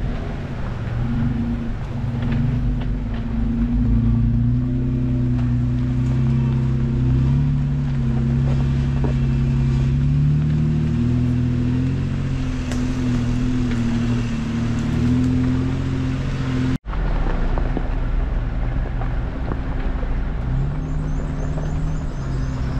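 Tyres crunch and bump over a rocky dirt track.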